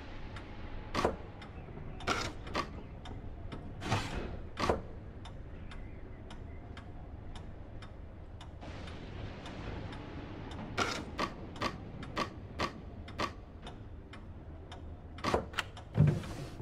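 A heavy wooden click sounds as a block drops into place.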